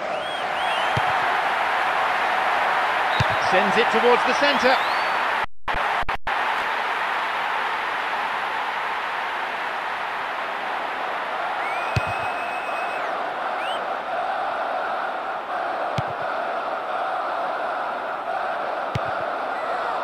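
A ball is kicked with dull thuds now and then.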